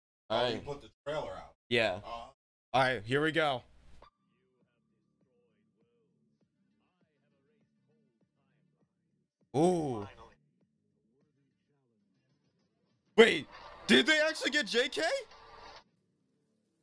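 A young man talks with animation into a nearby microphone.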